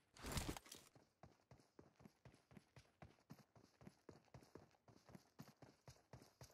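Quick footsteps tap steadily on a wooden floor.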